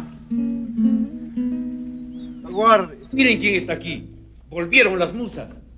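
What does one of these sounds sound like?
A guitar is strummed.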